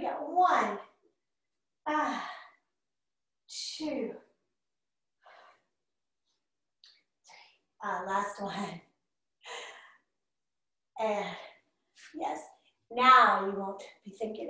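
A woman speaks calmly in short phrases, close by.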